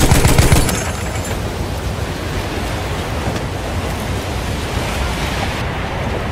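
Strong wind roars and howls steadily outdoors.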